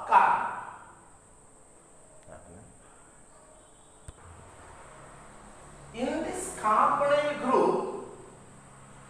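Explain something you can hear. A man speaks calmly nearby in a room.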